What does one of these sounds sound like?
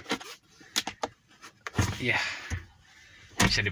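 A plastic console lid clicks open.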